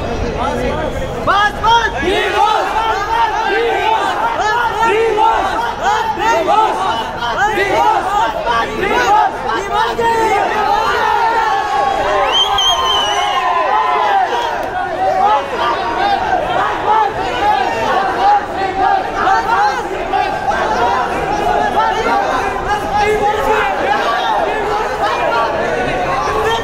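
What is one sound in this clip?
A large crowd of men shouts and cheers excitedly close by.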